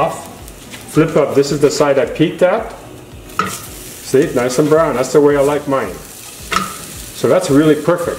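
A spatula scrapes against a frying pan.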